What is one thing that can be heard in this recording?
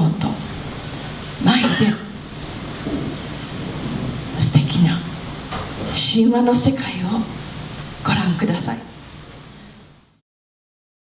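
A middle-aged woman speaks slowly into a microphone, heard through loudspeakers in a reverberant room.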